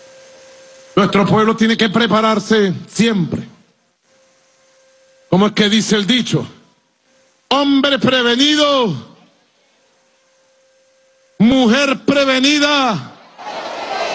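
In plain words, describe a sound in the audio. A man speaks forcefully into a microphone over loudspeakers, with echo.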